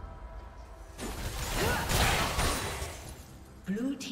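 Magical spell blasts whoosh and crackle in a loud burst.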